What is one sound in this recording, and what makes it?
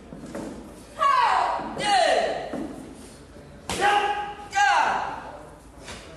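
Young fighters give sharp, loud shouts as they strike.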